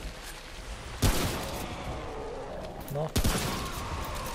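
A shotgun fires loudly a few times.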